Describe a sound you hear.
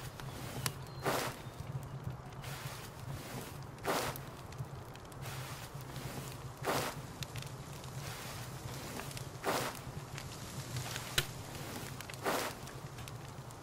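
Seeds are pressed into soil with a short rustling puff every few seconds.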